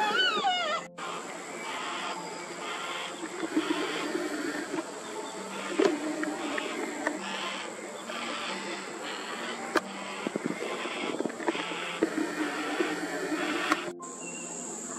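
A young cockatoo begs with rapid, repeated beeping calls.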